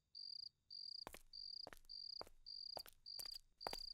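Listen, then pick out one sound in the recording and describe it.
Footsteps tap on hard ground at a walking pace.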